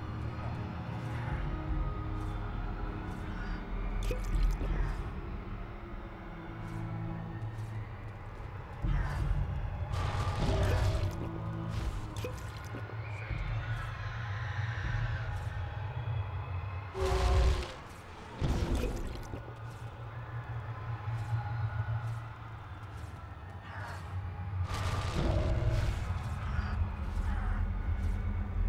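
Magic spells zap and crackle during a fight.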